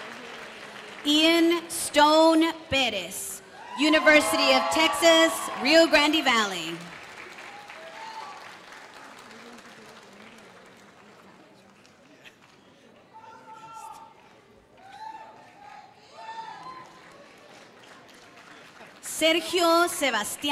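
A young woman reads out names through a loudspeaker in a large echoing hall.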